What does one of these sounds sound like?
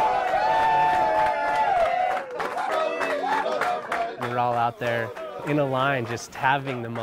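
A group of men clap their hands in rhythm.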